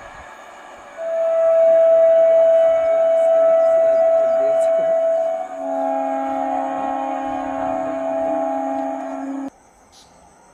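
A train horn blares loudly and long.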